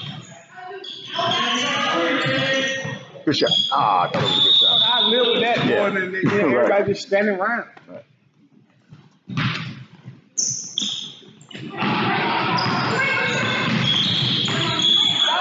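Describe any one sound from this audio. Young people shout and call out in a large echoing hall.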